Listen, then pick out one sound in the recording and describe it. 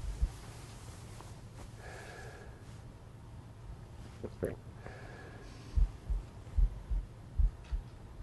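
A woman sighs softly close by.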